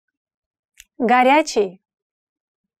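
A woman speaks a single word slowly and clearly, close to a microphone.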